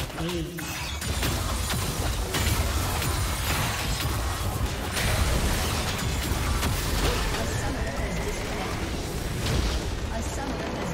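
Game spell effects crackle and boom in a busy fight.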